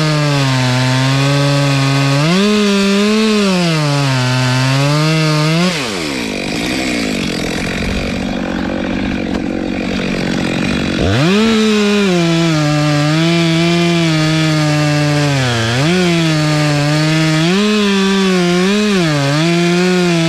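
A chainsaw engine roars up close, revving up and down.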